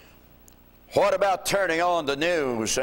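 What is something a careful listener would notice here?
An older man speaks loudly and with emphasis into a microphone in an echoing room.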